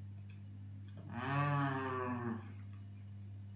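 A teenage boy hums with pleasure.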